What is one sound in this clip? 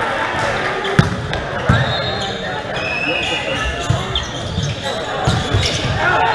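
Volleyball players hit the ball with sharp slaps in a large echoing hall.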